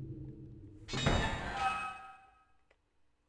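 A metal grate clanks and rattles.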